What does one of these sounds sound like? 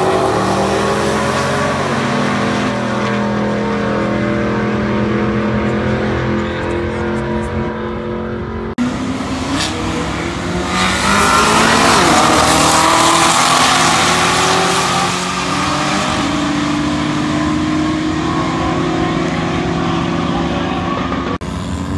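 Race car engines rumble and drone loudly nearby.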